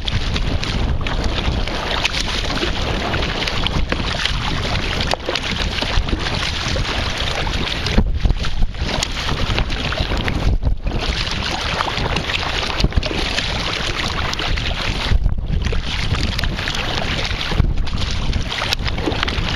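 A paddle splashes and dips into choppy water.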